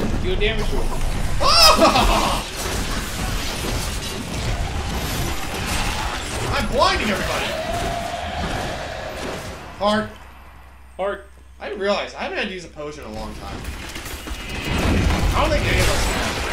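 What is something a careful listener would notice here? Weapons clash and spells burst during a fight.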